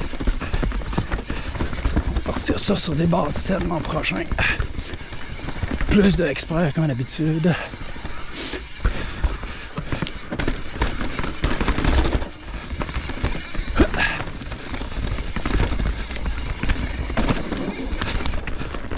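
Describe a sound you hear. Bike tyres crunch and skid over a dirt trail.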